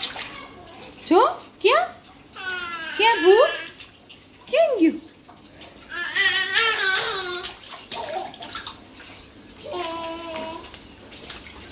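A baby squeals and babbles happily.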